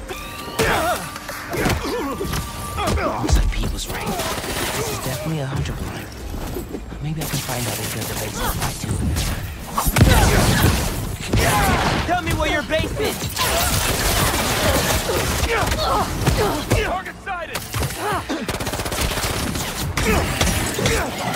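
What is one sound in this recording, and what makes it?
Energy blasts crackle and whoosh.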